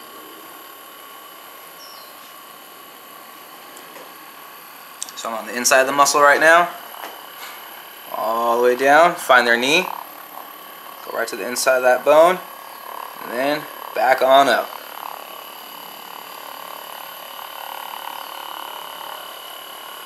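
A massage gun buzzes steadily.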